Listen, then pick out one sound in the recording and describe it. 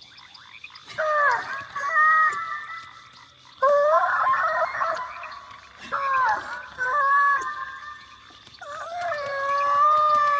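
A small creature sings in warbling, chirping calls.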